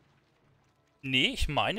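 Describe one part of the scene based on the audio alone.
A young man speaks loudly and with animation, close into a microphone.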